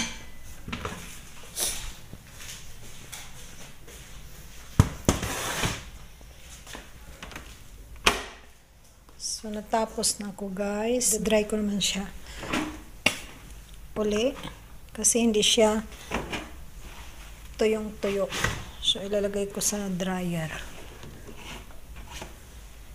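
Cloth rustles as laundry is lifted and handled.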